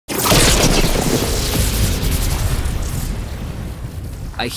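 Lightning crackles and roars loudly, then fades.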